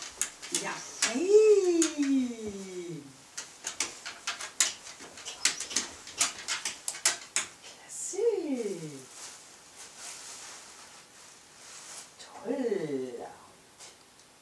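A woman speaks to a dog in a drawn-out, sing-song voice.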